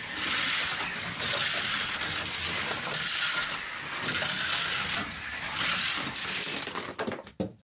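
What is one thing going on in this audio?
A toy car's plastic wheels rumble and whir along a plastic track.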